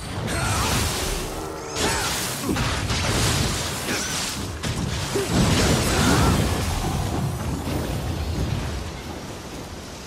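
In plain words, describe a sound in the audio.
Swords clash and slash loudly in a fight.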